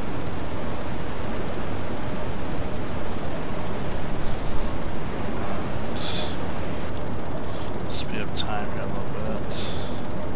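Stormy sea waves roar and wash steadily.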